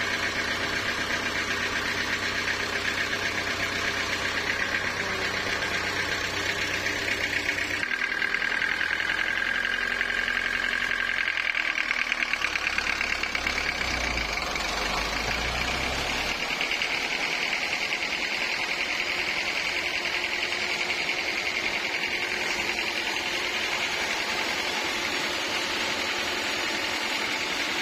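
A sawmill machine hums and whines steadily.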